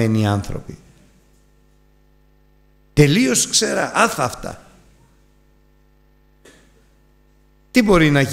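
An elderly man speaks with emphasis into a microphone, pausing between phrases.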